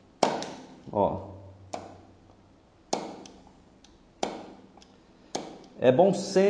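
Metal taps sharply against metal on a wooden block.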